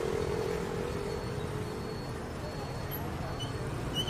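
A tractor engine chugs nearby.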